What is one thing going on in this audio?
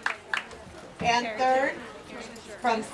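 A woman speaks through a microphone, announcing to a crowd.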